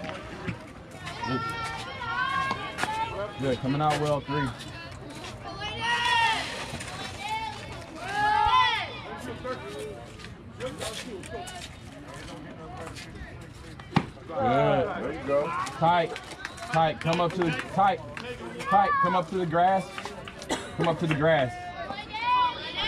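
Young girls cheer and chant outdoors.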